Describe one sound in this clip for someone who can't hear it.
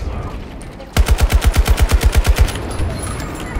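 An assault rifle fires a rapid automatic burst.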